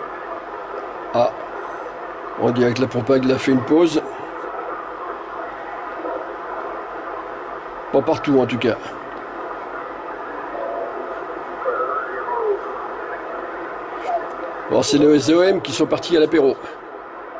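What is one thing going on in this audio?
A radio receiver hisses and crackles with static as its dial is turned.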